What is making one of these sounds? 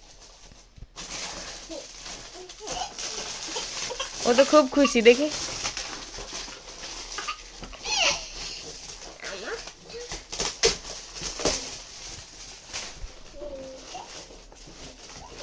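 Plastic wrapping crinkles and rustles as it is torn open.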